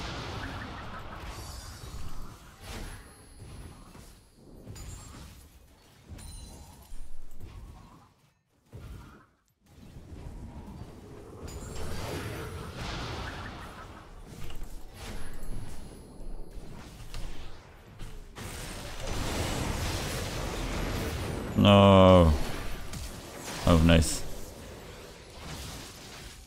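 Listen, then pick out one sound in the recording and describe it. A young man talks into a close microphone, with animation.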